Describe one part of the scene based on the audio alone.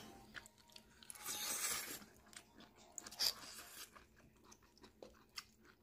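A child slurps noodles.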